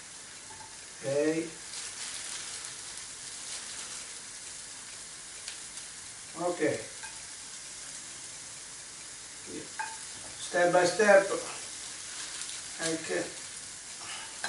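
A man speaks calmly in short bursts nearby.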